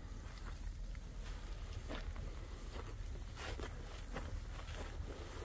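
Cattle hooves thud and rustle through dry grass.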